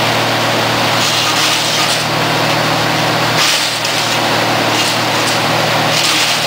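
Branches are ground and shredded in a wood chipper.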